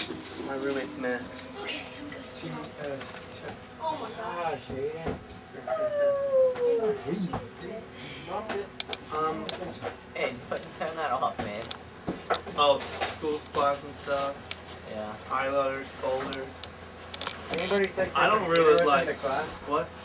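Young men talk and laugh nearby.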